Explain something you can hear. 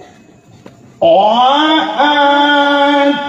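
An elderly man sings in a long, loud, wavering voice through a microphone.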